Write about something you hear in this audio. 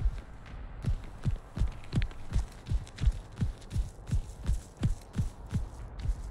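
Heavy footsteps thud quickly and evenly on the ground.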